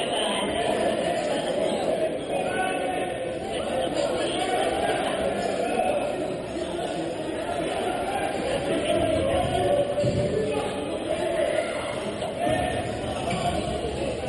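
A crowd cheers and chants loudly in an echoing indoor hall.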